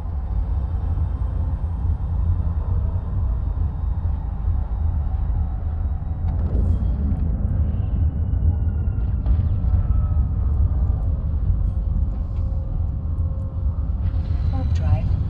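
A spaceship engine drones with a low rumble.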